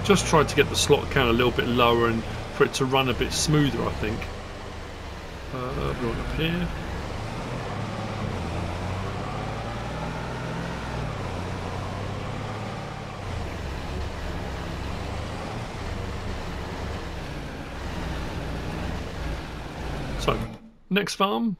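A vehicle engine rumbles steadily as it drives along.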